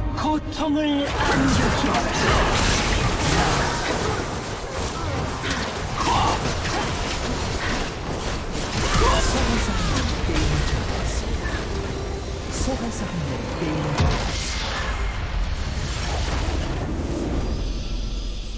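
Spell effects in a video game whoosh and burst during a fight.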